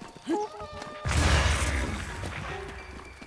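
A bomb explodes with a loud, rumbling boom.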